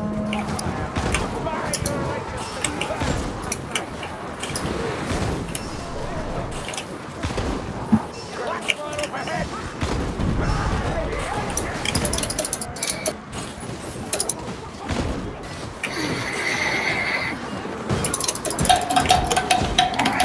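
Creatures snarl and screech in a fight.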